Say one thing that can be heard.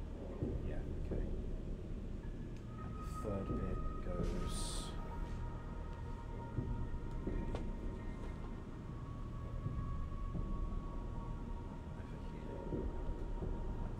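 Small plastic bricks rattle and click as hands sort through them.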